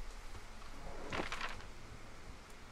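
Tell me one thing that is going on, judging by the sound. Paper rustles as a map unfolds.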